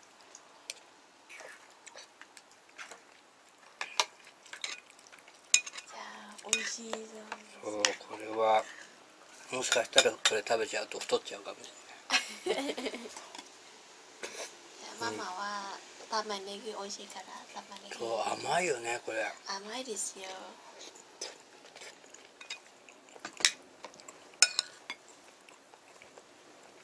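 Cutlery and chopsticks clink against dishes.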